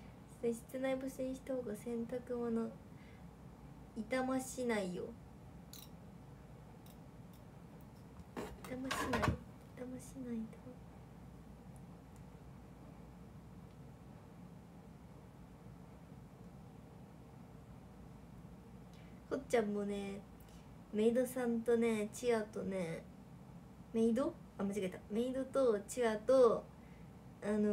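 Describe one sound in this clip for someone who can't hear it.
A young woman talks in a lively way, close to the microphone, with pauses.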